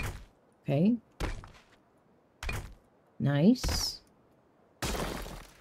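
A pickaxe strikes rock in repeated hard blows.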